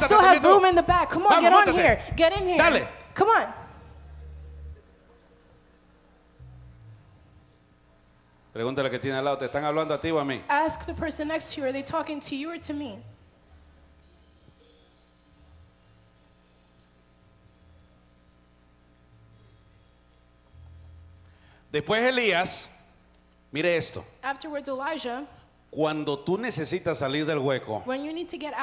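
A middle-aged man preaches with animation into a microphone, heard through loudspeakers in a large echoing hall.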